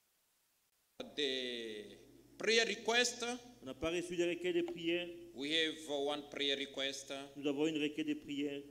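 A man speaks steadily through a microphone in an echoing room.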